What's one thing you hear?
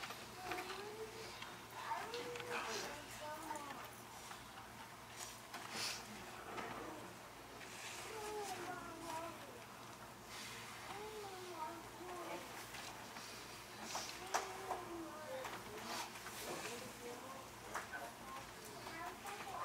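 A woman sings slowly and softly in a large echoing room.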